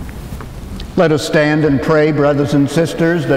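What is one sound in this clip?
An elderly man chants in a sung voice, heard through a microphone in an echoing hall.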